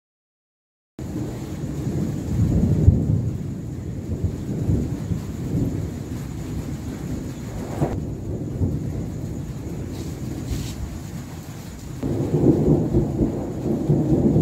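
Thunder rumbles in the distance.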